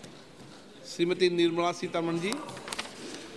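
A man speaks briefly through a microphone in a large hall.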